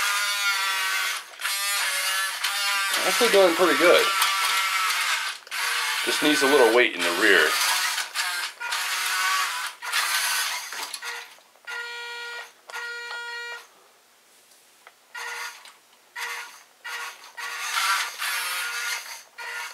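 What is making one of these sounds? A small electric motor whirs as a toy truck drives back and forth.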